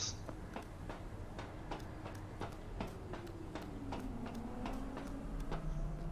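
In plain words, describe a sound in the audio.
Footsteps clank on metal ladder rungs in a steady rhythm.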